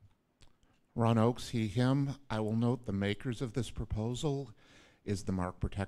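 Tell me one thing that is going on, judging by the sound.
A man speaks calmly into a microphone, heard through a loudspeaker in a large hall.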